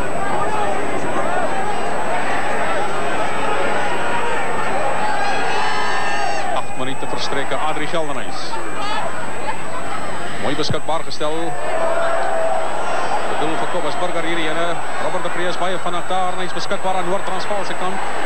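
A large crowd cheers and shouts in the distance outdoors.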